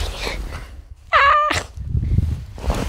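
A boy yells playfully close to the microphone.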